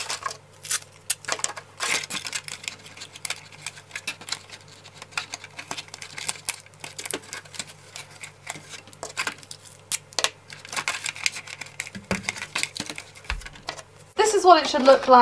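Plastic crinkles and rustles as hands handle it.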